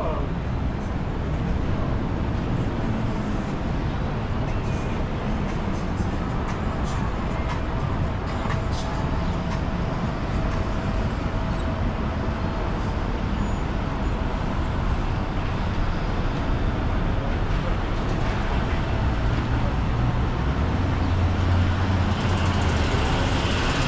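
City traffic rumbles steadily along a nearby street outdoors.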